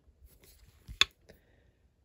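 A clear plastic block knocks once with a sharp click.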